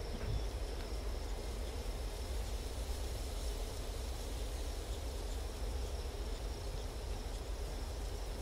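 A campfire crackles softly.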